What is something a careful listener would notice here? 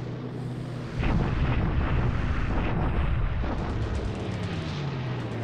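Aircraft engines drone overhead.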